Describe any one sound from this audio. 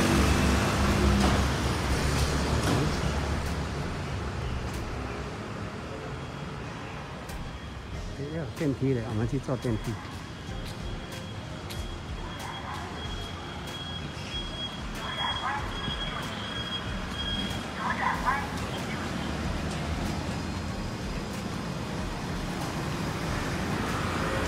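City traffic hums steadily in the distance outdoors.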